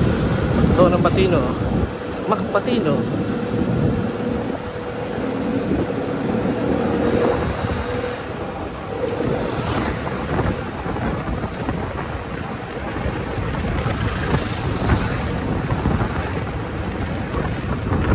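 A motorbike engine hums steadily while riding along a street.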